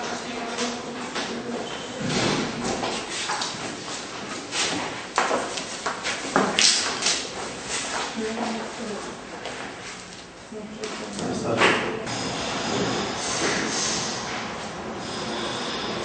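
Men talk nearby in a hallway.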